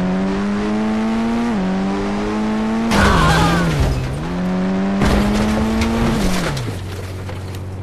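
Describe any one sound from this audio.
A sports car engine revs up loudly, dropping in pitch with each gear change.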